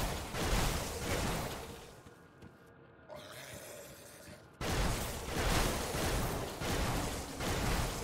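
Electric spells crackle and zap loudly.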